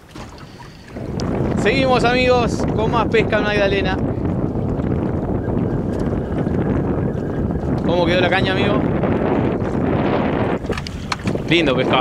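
Wind rushes steadily across open water.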